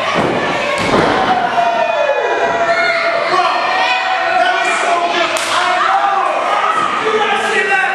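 Bodies thud onto a wrestling ring's mat.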